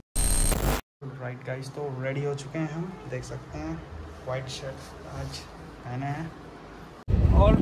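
A young man talks casually nearby.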